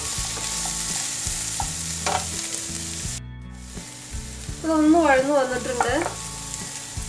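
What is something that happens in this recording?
Onions sizzle in a hot pan.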